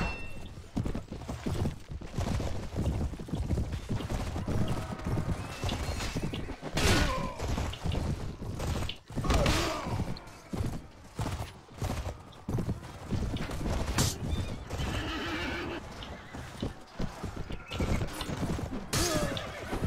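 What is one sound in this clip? Swords clash and strike in battle.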